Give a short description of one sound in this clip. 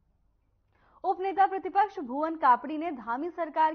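A young woman reads out news clearly through a microphone.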